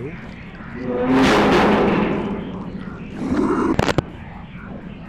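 A young man screams loudly into a close microphone.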